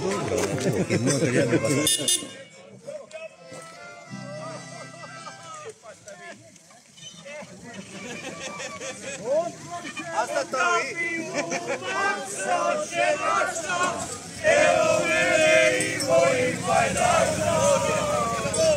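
An accordion plays a lively folk tune.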